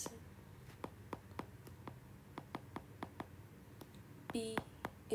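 A stylus taps quickly on a tablet's glass surface.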